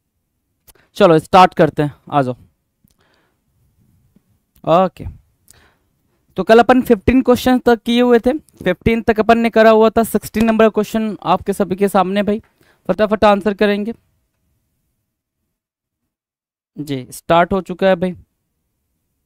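A man speaks with animation into a close microphone, explaining in bursts with pauses.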